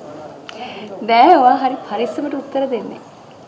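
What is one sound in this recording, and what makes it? A young woman speaks with a light, amused tone up close.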